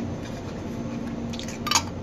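A glass jar lid clinks on a metal counter.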